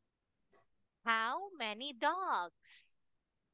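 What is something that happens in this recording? A young girl speaks clearly and with animation over an online call.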